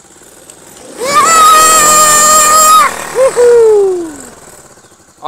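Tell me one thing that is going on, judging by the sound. A small quad bike engine revs hard and then winds down.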